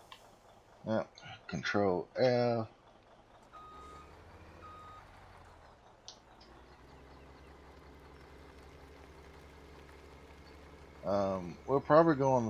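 A truck engine hums steadily as the truck drives slowly.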